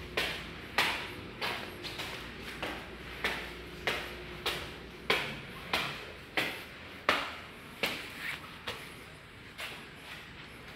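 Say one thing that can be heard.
Footsteps climb concrete stairs and cross a hard floor.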